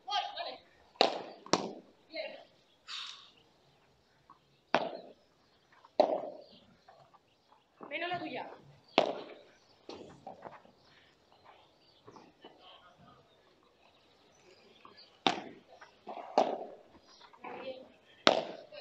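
Padel rackets hit a ball with sharp pops.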